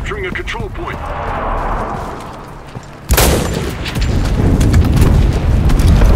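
A rifle's metal parts click and clack.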